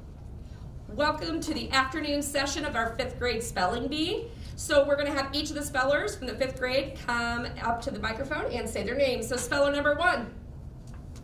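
A woman speaks with animation into a microphone, close by.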